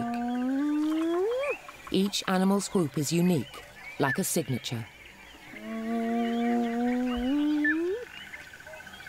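Hyenas whoop with long rising calls.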